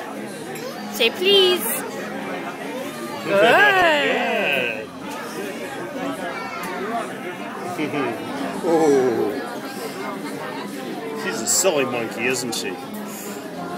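A toddler babbles and squeals nearby.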